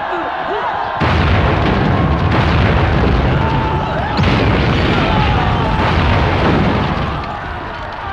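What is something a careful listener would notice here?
Explosions boom and roar nearby.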